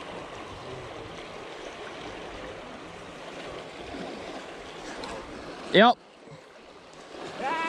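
Water rushes and churns over rocks close by.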